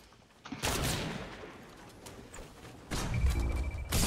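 Wooden walls snap into place with quick knocks.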